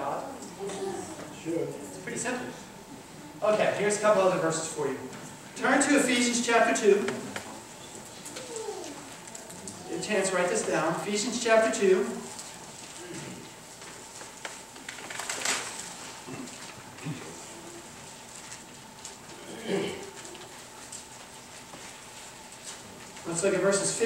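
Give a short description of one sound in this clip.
A man speaks calmly through a microphone in a room with a slight echo, pausing between phrases.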